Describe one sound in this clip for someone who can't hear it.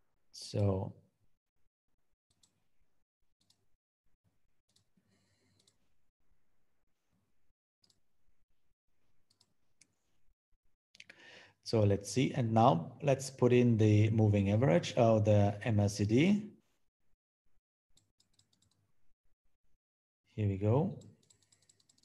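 A man speaks calmly into a microphone, in short bursts.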